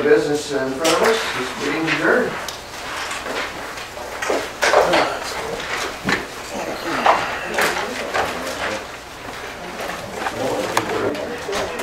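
Papers rustle and shuffle on a table.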